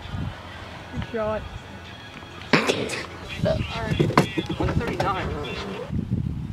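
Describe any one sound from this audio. A young man laughs and talks close by.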